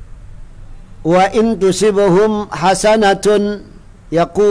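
A man reads aloud in a chanting voice close to a microphone.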